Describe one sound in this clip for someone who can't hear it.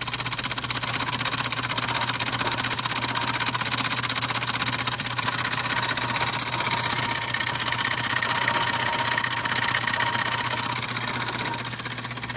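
A motor hums steadily.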